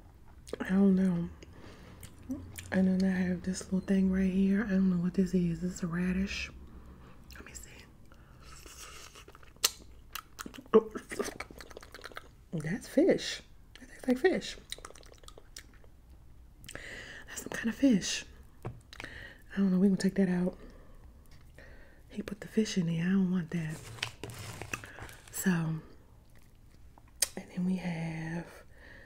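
A woman speaks softly and closely into a microphone.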